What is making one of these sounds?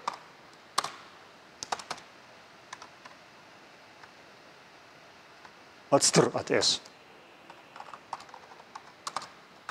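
Keys click on a keyboard in short bursts.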